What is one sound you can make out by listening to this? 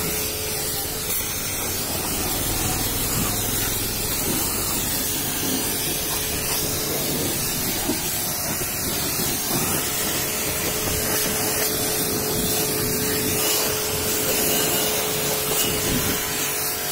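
A pressure washer pump hums steadily.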